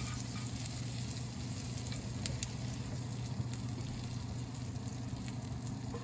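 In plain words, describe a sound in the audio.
Water sizzles and crackles on a hot glass cooktop.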